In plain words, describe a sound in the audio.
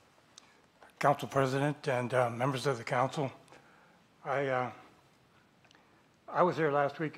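An elderly man speaks through a microphone in short bursts.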